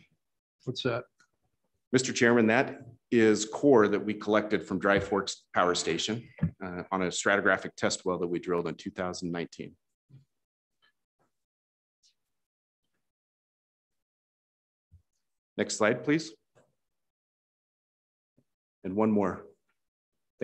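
A man lectures calmly into a microphone, heard through an online call.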